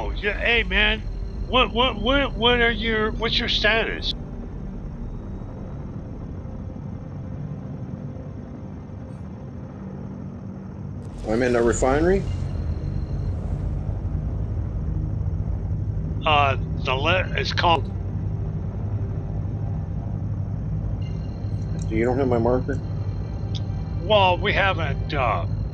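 A spaceship engine hums low and steadily.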